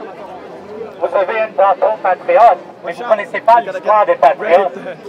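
A man shouts loudly through a megaphone close by.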